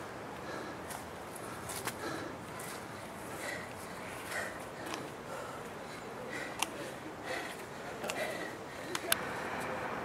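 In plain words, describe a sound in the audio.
Footsteps scuff on a paved path outdoors.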